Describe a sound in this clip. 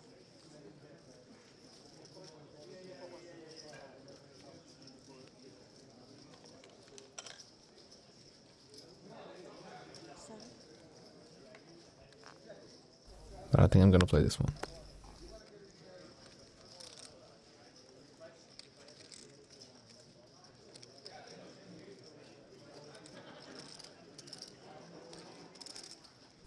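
Poker chips click together as a player handles them.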